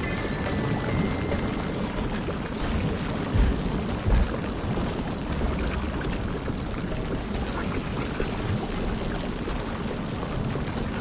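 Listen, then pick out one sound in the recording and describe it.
Lava bubbles and rumbles steadily.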